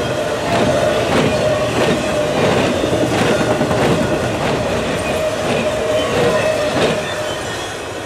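A train rumbles past nearby, its wheels clacking rhythmically over the rail joints.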